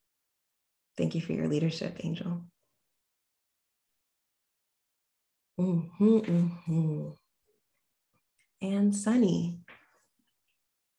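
A young woman speaks calmly and warmly into a nearby microphone, in short phrases with pauses.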